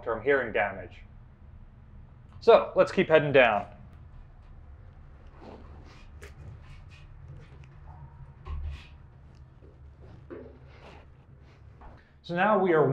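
A man speaks close by, straining and grunting with effort.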